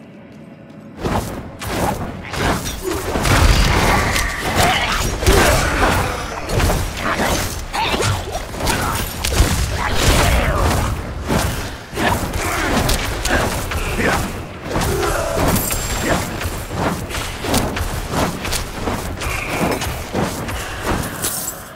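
Weapon strikes and spell blasts crash repeatedly in a video game.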